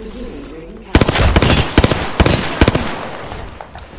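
Rapid gunfire bursts loudly from a game.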